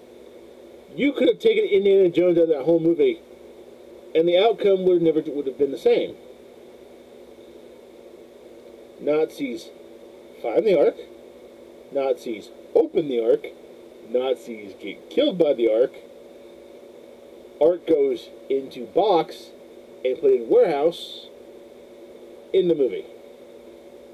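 A man talks close to a microphone with animation, in short bursts.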